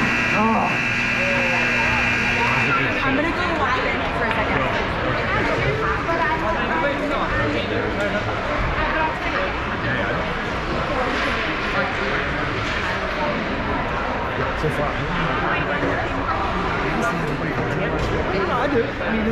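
Skate blades scrape across ice.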